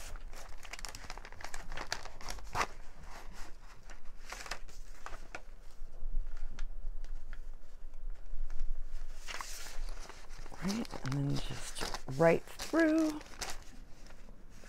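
Paper rustles and crinkles as pages are handled.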